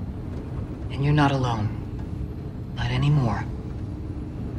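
A young woman speaks softly and reassuringly.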